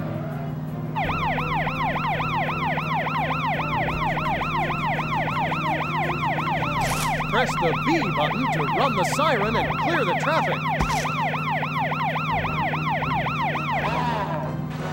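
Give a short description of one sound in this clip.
A police siren wails rapidly up and down, then stops.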